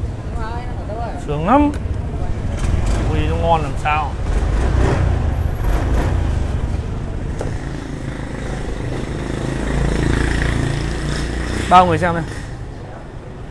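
Motorbike traffic rumbles in the street nearby.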